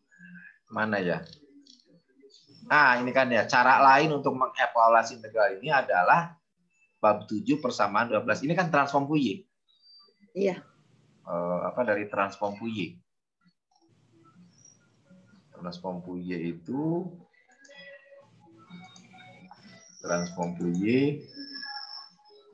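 A man speaks calmly over an online call, explaining at length.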